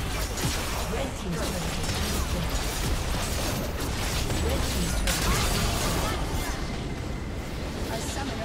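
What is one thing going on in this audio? Game spell effects crackle and clash in a fast battle.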